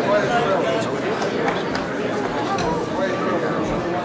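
An elderly man talks warmly up close.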